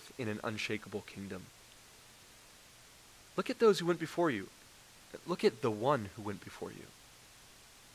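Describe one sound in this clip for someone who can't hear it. A man speaks calmly into a microphone in a large room, pausing between phrases.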